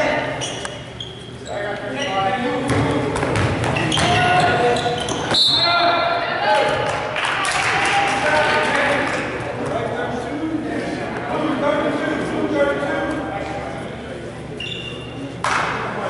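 Spectators and players shout and cheer in a large echoing gym.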